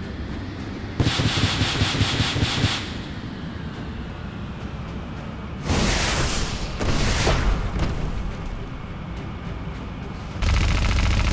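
A cannon fires in rapid bursts.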